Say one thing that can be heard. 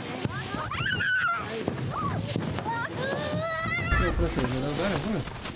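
A young child squeals and shouts with delight outdoors.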